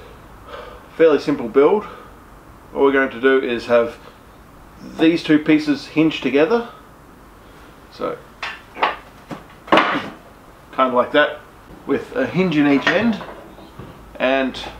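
A young man talks calmly and clearly, close by.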